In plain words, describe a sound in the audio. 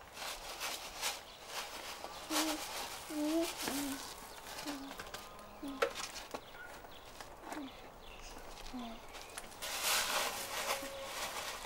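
A child's hand rustles and scoops through dry grain.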